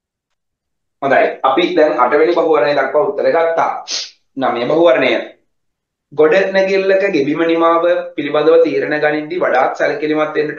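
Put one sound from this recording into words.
A man reads aloud close to a microphone in a calm, even voice.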